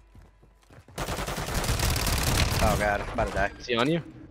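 Gunfire bursts loudly at close range.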